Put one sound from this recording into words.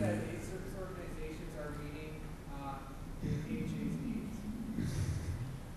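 A middle-aged man speaks earnestly into a microphone, heard through a loudspeaker in an echoing hall.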